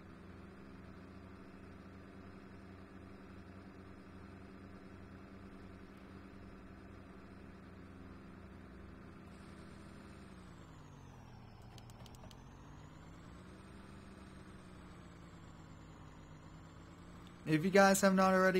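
A truck engine hums steadily, dropping in pitch as it slows and then picking up again.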